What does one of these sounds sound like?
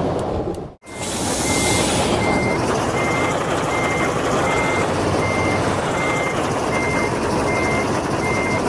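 A reversing alarm beeps at a steady pace as a truck backs up.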